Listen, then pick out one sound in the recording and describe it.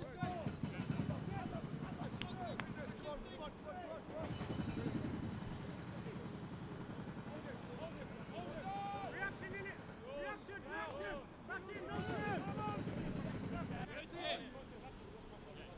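Men call out to each other from a distance across an open field.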